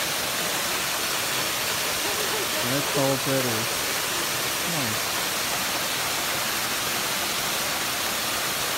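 A waterfall splashes steadily onto rocks close by.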